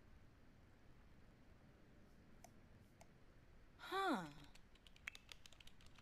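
Keys clatter softly on a computer keyboard.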